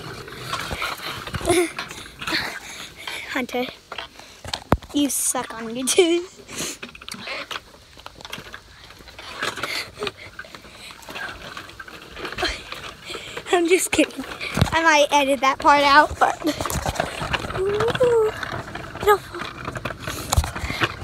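A young boy talks with animation close to a phone microphone.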